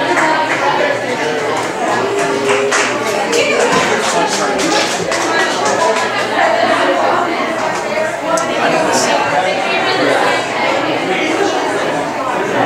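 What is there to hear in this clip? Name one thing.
An acoustic guitar is plucked and tuned.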